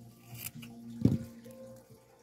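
Small shears snip with a sharp click.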